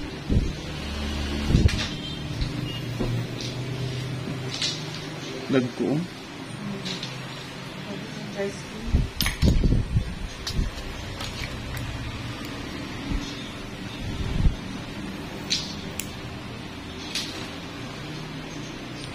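Small nail nippers click as they snip a toenail.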